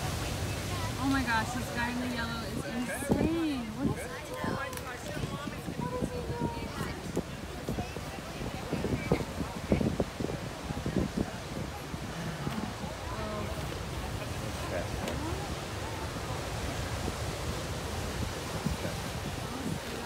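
Waves crash and surge steadily onto a pebble shore.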